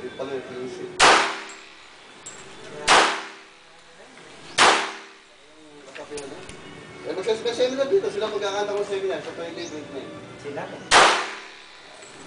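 A handgun fires single loud shots with a short echo, outdoors.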